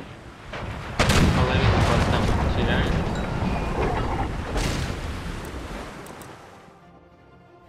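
Waves wash and splash against a sailing ship's hull.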